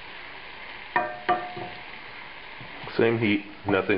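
A wooden spoon stirs and knocks against a pan.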